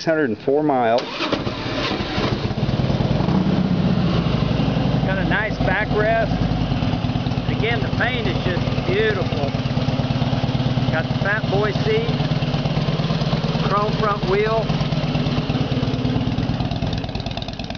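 A motorcycle engine idles with a deep, uneven rumble.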